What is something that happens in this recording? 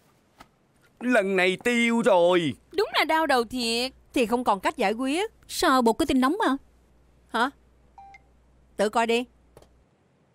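A woman speaks with agitation nearby.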